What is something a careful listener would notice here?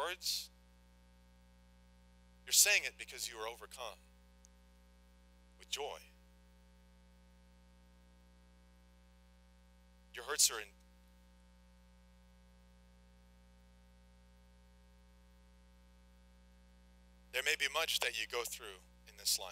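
A man speaks calmly through a microphone, with long pauses between phrases.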